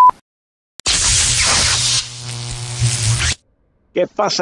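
Electricity crackles and buzzes loudly.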